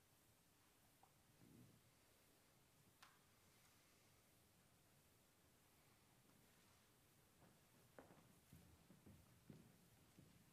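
Handbell ringers set their bells down with soft knocks.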